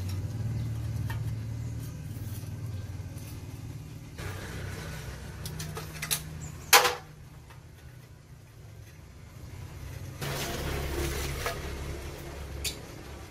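A metal wrench scrapes and ratchets on a bolt.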